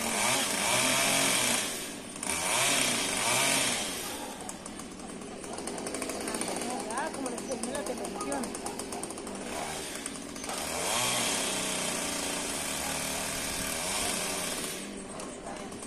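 A chainsaw revs in loud bursts.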